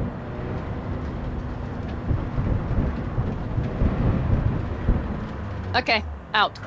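A car engine rumbles as the car drives over rough ground.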